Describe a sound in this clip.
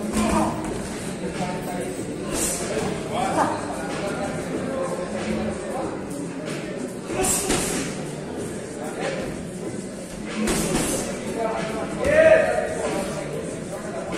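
Men talk and call out nearby in an echoing hall.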